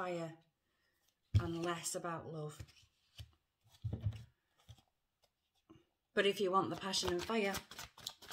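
A middle-aged woman speaks calmly and close to the microphone, in short phrases with pauses.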